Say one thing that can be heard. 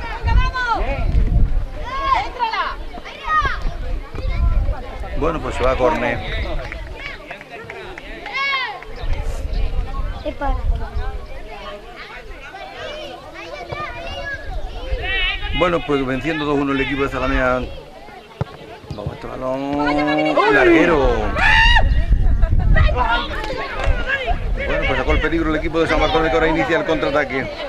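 Boys shout to each other across an open outdoor pitch.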